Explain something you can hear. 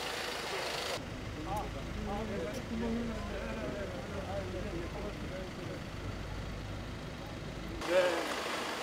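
Men talk quietly nearby outdoors.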